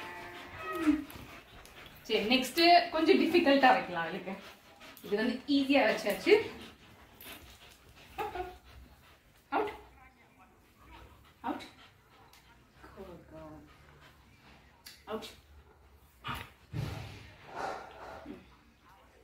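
A young woman talks to dogs with animation, close by.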